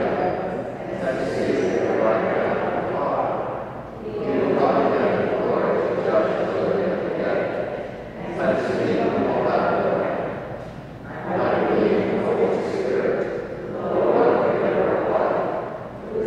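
An elderly man reads aloud in a steady, measured voice through a microphone in a large echoing hall.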